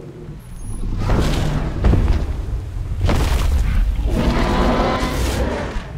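A large beast roars.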